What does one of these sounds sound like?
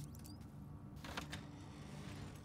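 Metal swing doors bang open.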